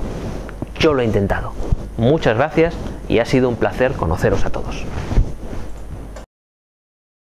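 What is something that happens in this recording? A middle-aged man speaks calmly and clearly into a close microphone.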